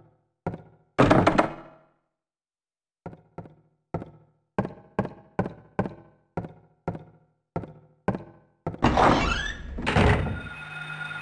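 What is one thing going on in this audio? A heavy door rattles as someone pushes it.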